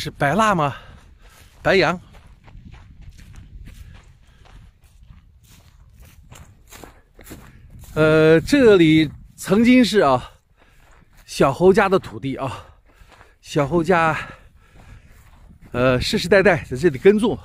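Footsteps crunch on dry grass and a dirt path.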